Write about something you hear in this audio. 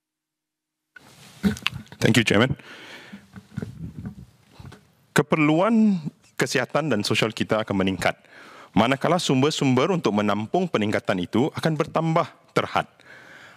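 A man speaks steadily into a microphone.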